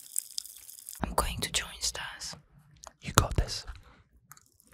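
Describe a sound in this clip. A woman speaks softly, very close to a microphone.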